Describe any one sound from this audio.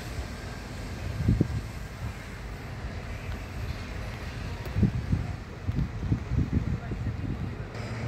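Wind blows outdoors with low rumbling gusts.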